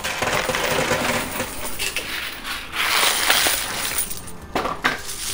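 A coin pusher shelf slides back and forth.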